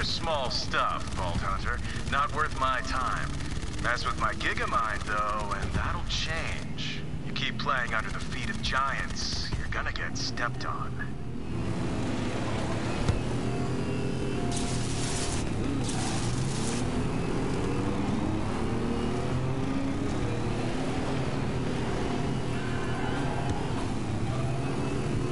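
Racing engines whine and rev as vehicles speed along.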